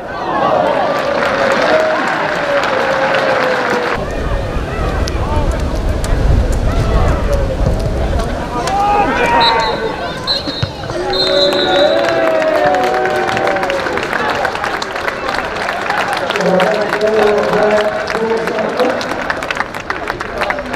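A large crowd cheers and chants in an open stadium.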